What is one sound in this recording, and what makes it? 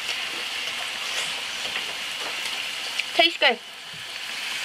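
A woman speaks close up.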